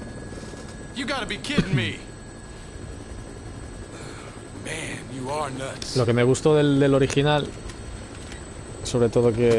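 A man answers loudly over a headset microphone.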